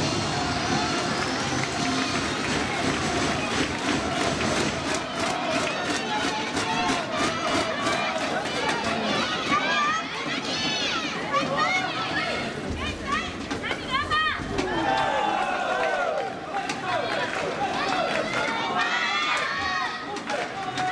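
Shuttlecocks are struck with sharp taps of rackets.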